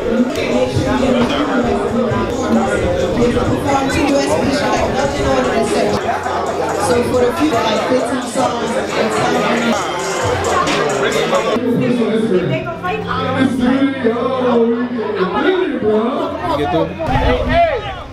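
A crowd of young men and women chatters loudly.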